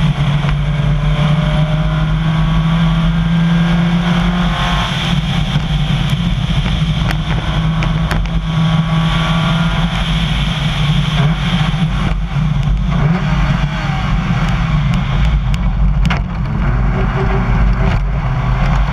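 Stones clatter against the underside of a car.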